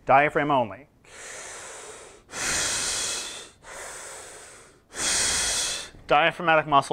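A man breathes in and out slowly and deeply.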